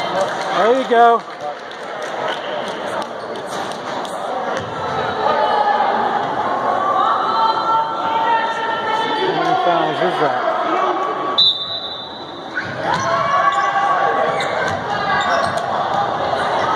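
Spectators talk and cheer in a large echoing hall.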